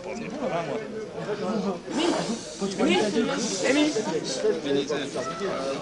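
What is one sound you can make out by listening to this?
A drink glugs as it is poured from a bottle.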